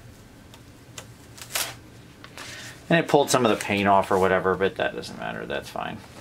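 A plastic sheet rustles briefly.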